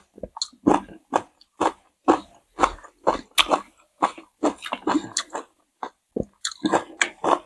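A woman chews and crunches food close to a microphone.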